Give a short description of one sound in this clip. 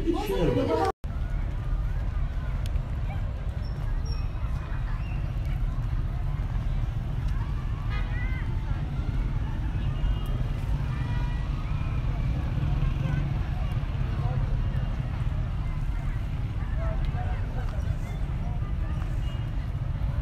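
A crowd of people chatters faintly in the distance, outdoors in wind.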